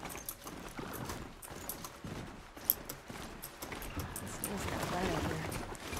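Mechanical hooves clatter over rocky ground.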